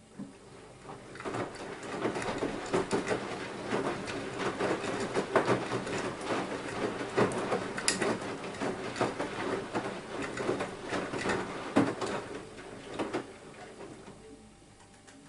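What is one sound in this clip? Water and laundry slosh and splash inside a washing machine drum.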